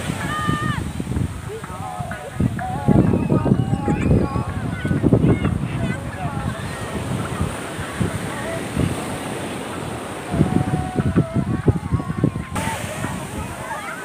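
Waves break and wash up on the shore.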